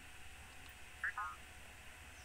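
A short electronic chime sounds as a game menu closes.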